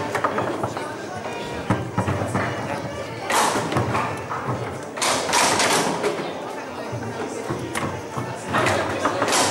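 Foosball rods rattle and thud as they are spun and pushed.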